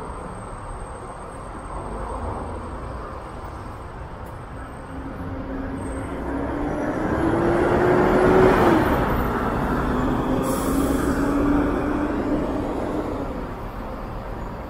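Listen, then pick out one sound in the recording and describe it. An articulated bus drives past close by, its engine humming loudly and then fading.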